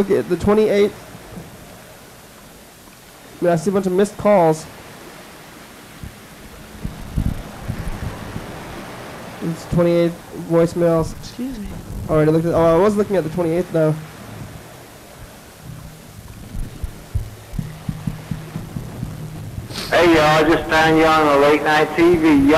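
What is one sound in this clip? A young woman sings into a microphone in short phrases.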